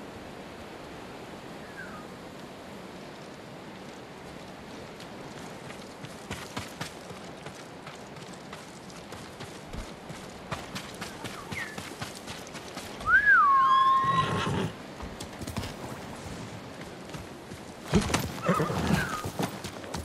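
Wind blows steadily across open ground.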